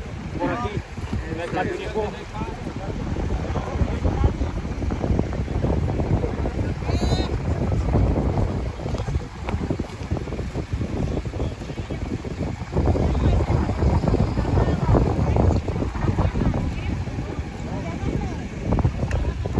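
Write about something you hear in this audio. Wind blows hard outdoors, rumbling.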